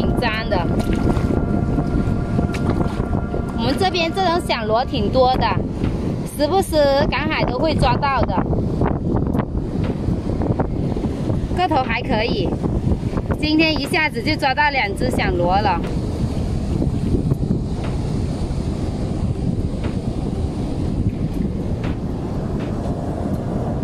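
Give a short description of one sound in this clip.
Shallow water sloshes and splashes around hands.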